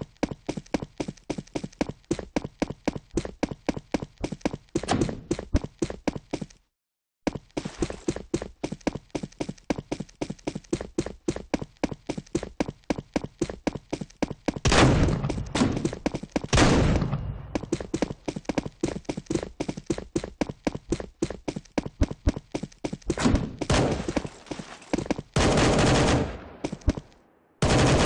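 Quick footsteps patter steadily.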